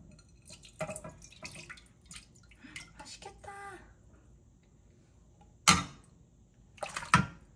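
Wet seaweed and liquid slide and splash into a pot.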